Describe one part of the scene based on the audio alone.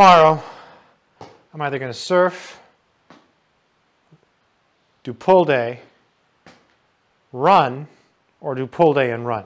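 A man speaks calmly and with animation into a close clip-on microphone, with pauses.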